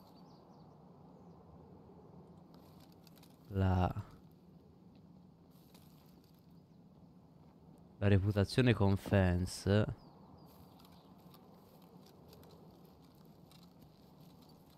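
Footsteps tread through grass outdoors.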